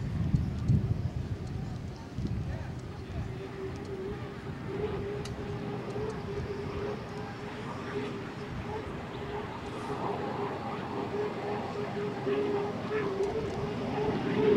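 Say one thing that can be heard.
A racing boat's engine roars steadily at high speed.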